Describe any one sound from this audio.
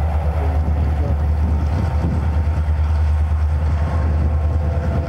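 Freight cars clatter along the rails.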